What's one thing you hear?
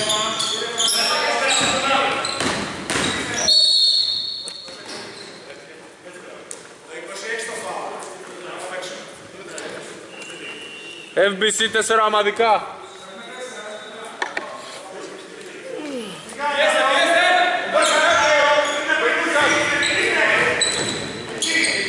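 Young men shout and call out to each other in an echoing gym.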